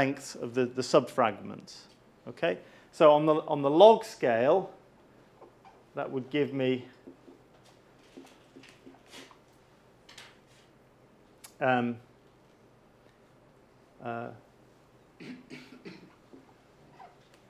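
A middle-aged man speaks calmly in a lecturing tone, close by.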